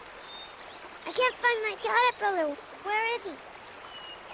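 A young boy speaks calmly up close.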